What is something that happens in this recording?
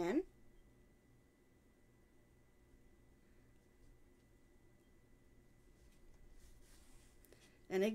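Yarn rustles softly as it is pulled through knitted fabric.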